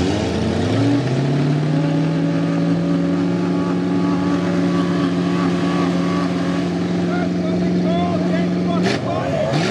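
A truck engine revs hard and roars steadily.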